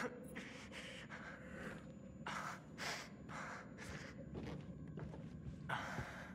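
Footsteps shuffle slowly across a hard floor.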